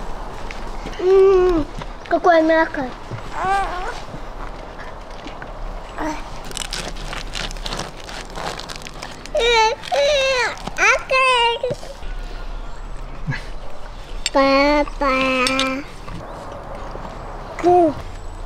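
A young girl talks with animation nearby.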